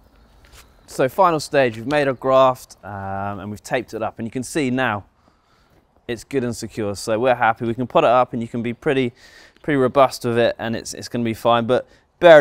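A young man speaks calmly and clearly, close to a microphone.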